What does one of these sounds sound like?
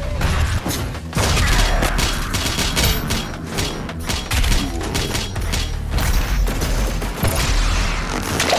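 A shotgun fires in loud, booming blasts.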